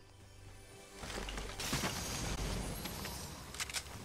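A treasure chest hums with a shimmering chime and bursts open.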